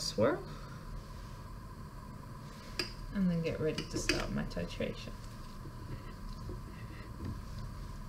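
A glass flask clinks softly against a metal stand.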